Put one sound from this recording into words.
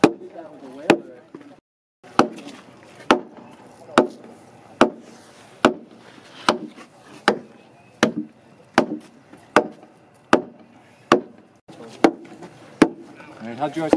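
A mallet pounds on a wooden beam with steady, even blows.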